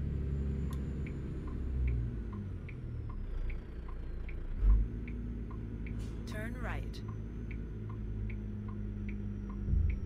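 A turn signal clicks at an even pace.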